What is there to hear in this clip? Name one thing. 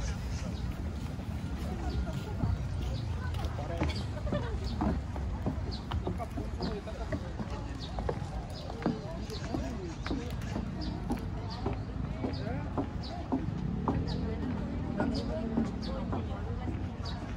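People talk nearby in casual voices.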